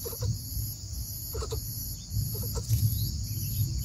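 Dry straw rustles as a bird shifts in its nest.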